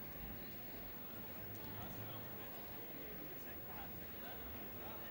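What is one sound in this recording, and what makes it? A large crowd chatters in a big echoing hall.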